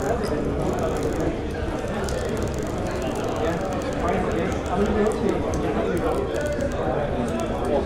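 Mugs clink on wooden tables.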